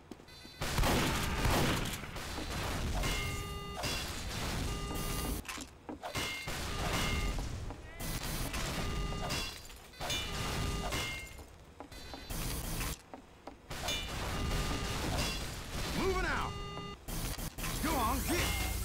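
A wrench clangs repeatedly against metal.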